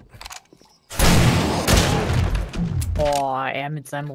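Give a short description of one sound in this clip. A double-barrel shotgun fires a loud blast.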